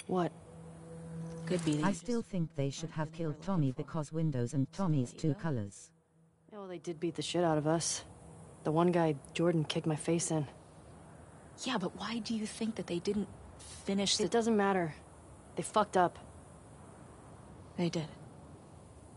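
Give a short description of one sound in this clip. A woman answers, speaking casually.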